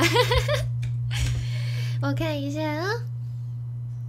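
A young woman laughs brightly.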